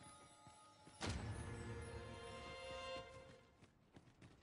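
A magic spell blasts with a loud whoosh.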